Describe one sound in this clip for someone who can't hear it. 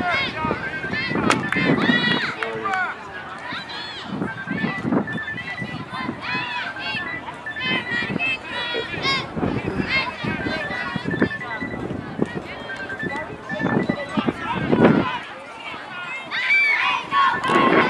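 Young boys shout and call out to each other across an open field.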